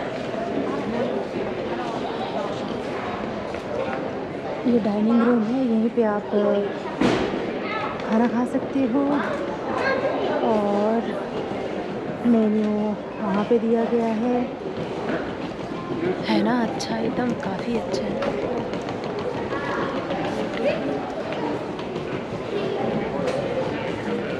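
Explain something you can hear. A crowd murmurs softly in a large echoing hall.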